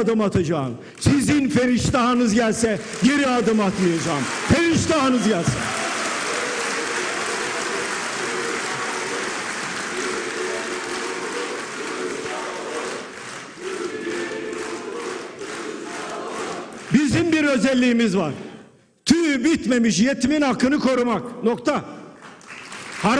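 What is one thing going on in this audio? An elderly man speaks forcefully into a microphone in a large echoing hall.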